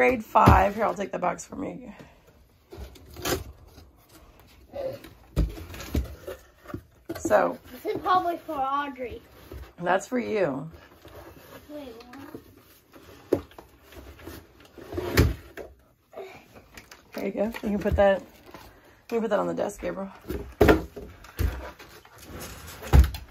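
Cardboard rustles and thumps as a box is opened and handled.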